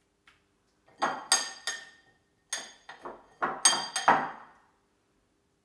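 A spoon scrapes against a bowl.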